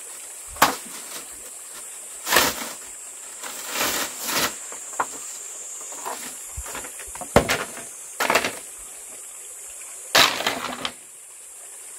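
Bamboo poles knock and clatter against each other.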